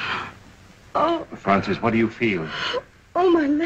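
An older man speaks softly and urgently up close.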